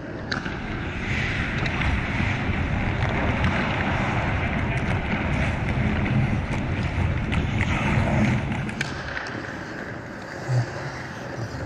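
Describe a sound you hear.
Ice skates scrape and carve across the ice up close.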